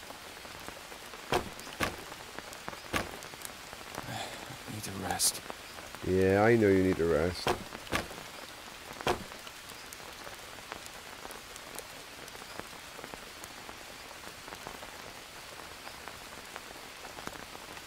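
Wooden sticks knock softly as they are set in place.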